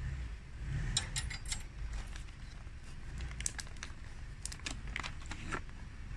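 A paper bag crinkles and rustles close by.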